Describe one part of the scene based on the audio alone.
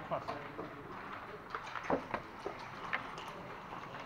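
Playing pieces click and clack against a wooden board.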